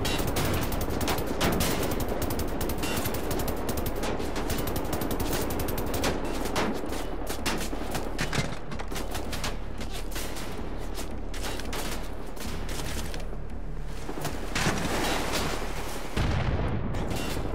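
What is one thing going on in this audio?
Explosions boom and crackle nearby.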